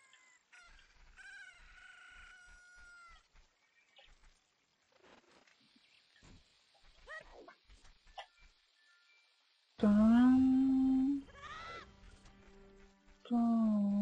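A young man talks quietly close to a microphone.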